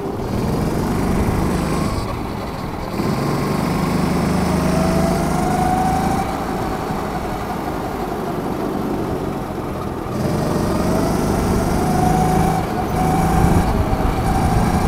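A small kart engine buzzes loudly close by, its pitch rising and falling as it speeds up and slows.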